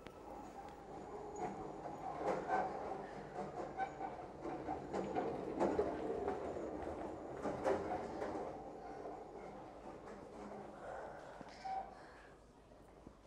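A hospital trolley rolls along a hard floor.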